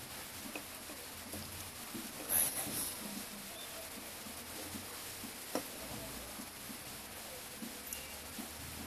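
Plastic parts click and rattle as they are handled.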